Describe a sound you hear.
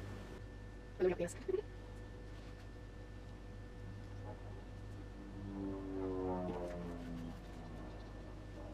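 A wooden spatula scrapes inside a metal pan.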